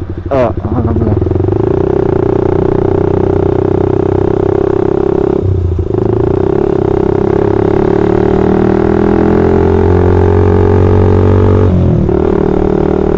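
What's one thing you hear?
A motorcycle engine hums steadily up close, its pitch rising and falling with the throttle.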